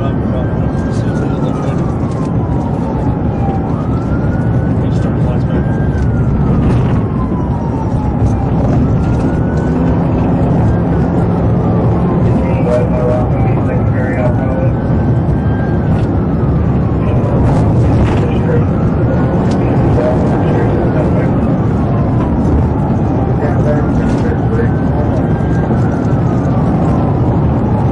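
A police car's siren wails, rising and falling.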